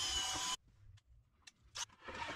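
A drill chuck clicks as it is twisted by hand.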